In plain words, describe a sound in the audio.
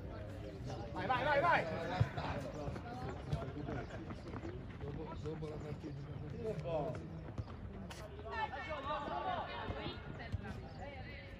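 Men nearby talk and call out outdoors.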